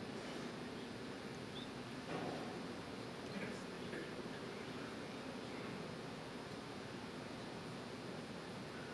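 A large crowd murmurs softly in a big echoing hall.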